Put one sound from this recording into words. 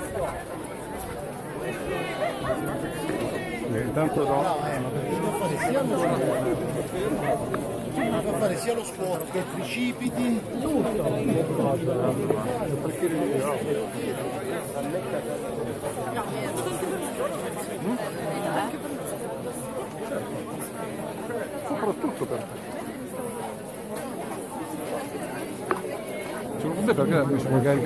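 Rain patters on umbrellas close by.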